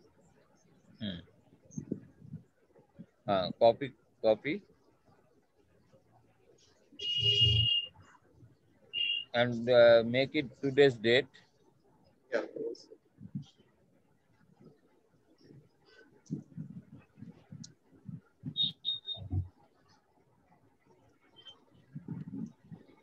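A young man speaks casually over an online call.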